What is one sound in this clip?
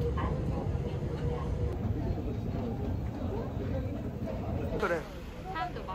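An escalator rumbles and hums steadily.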